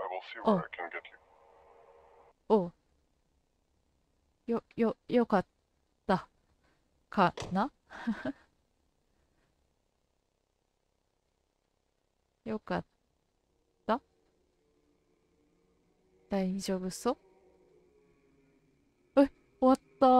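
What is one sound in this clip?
A young woman talks with animation into a microphone.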